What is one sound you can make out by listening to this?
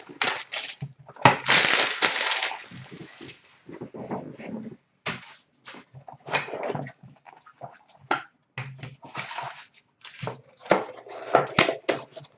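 A cardboard box scrapes and taps as it is opened and moved.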